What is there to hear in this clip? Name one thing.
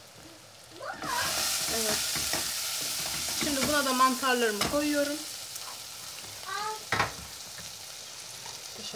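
Onions sizzle in hot oil in a pan.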